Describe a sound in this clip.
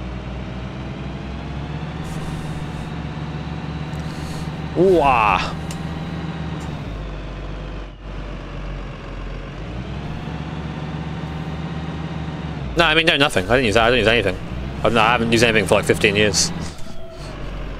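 A bus engine hums steadily as the bus drives.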